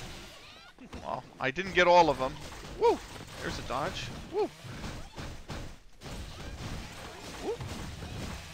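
Punches and sword swishes thud and whoosh in quick succession from a fighting game.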